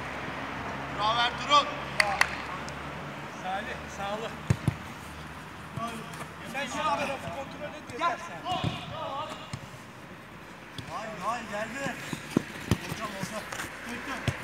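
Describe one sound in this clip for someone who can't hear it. Men shout to each other outdoors during a game.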